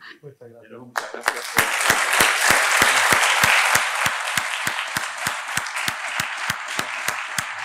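An audience applauds loudly, falling into rhythmic clapping.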